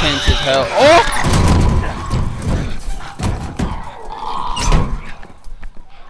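A man grunts and strains with effort.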